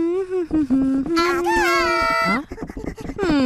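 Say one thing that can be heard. A young woman calls out loudly.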